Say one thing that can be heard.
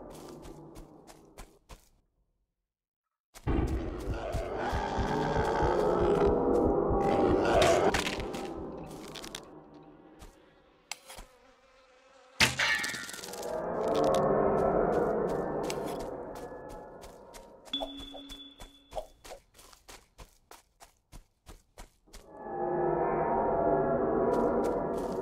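Footsteps crunch steadily through undergrowth.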